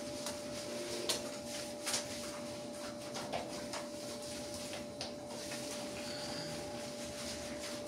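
Hands rub and squelch through a dog's soapy wet fur.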